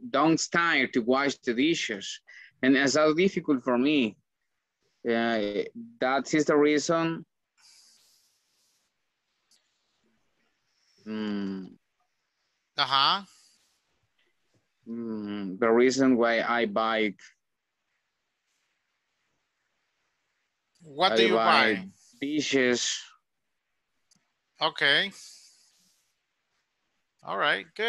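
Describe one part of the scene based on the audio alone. A man speaks calmly with pauses, heard through an online call.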